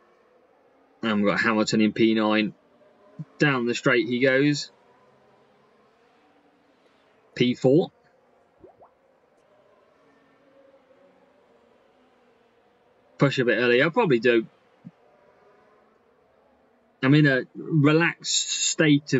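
A young man talks in short bursts into a close microphone.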